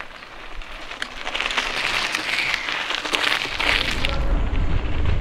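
Mountain bike tyres crunch over loose gravel.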